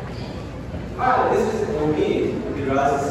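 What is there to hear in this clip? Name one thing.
A man speaks loudly to a group in a large echoing room.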